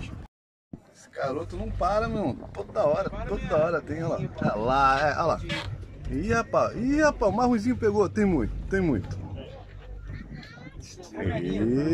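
Men talk casually nearby on a boat.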